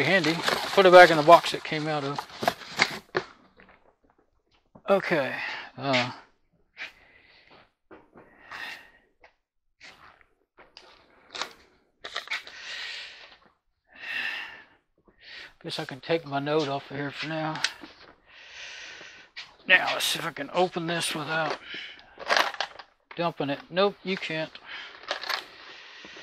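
An older man talks nearby, calmly.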